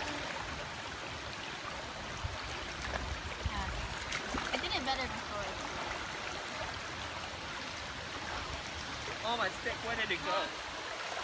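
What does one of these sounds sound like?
A river flows with a steady rushing hiss.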